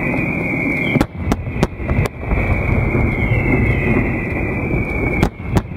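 Fireworks explode with sharp, loud bangs.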